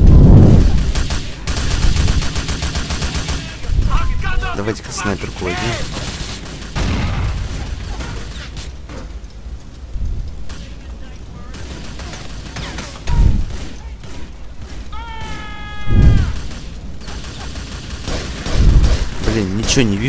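Gunshots boom loudly, one at a time.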